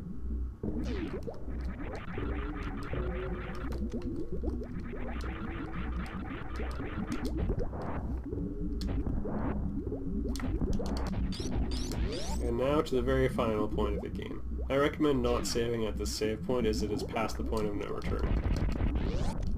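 Electronic game music plays with a steady pulsing beat.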